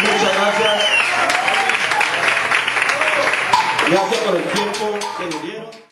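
A small crowd cheers and shouts excitedly close by.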